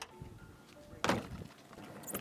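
Shoes thud onto a car roof.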